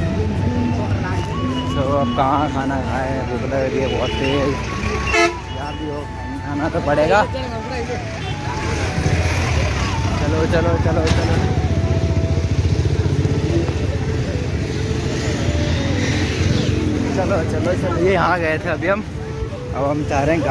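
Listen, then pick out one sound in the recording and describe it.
Men talk nearby in loud, animated voices.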